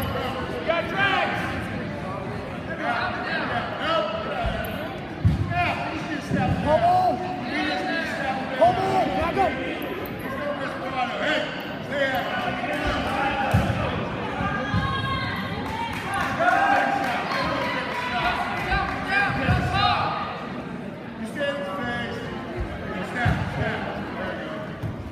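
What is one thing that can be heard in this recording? A crowd of young spectators shouts and cheers in an echoing gym.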